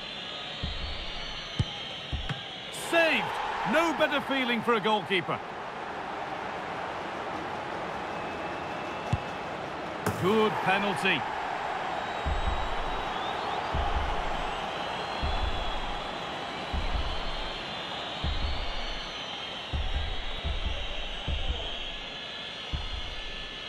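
A large stadium crowd roars and cheers steadily throughout.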